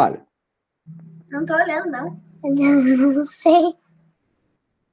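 A young girl laughs over an online call.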